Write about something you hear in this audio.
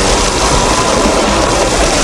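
Rain falls steadily on a wet street.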